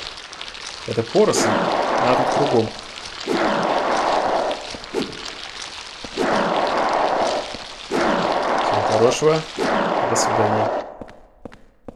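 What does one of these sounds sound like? A metal pipe swishes through the air and strikes again and again.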